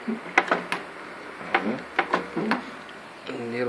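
A cable plug knocks and clicks against a metal socket.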